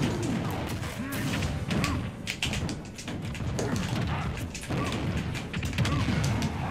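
Punches and blasts land with sharp thuds and cracks.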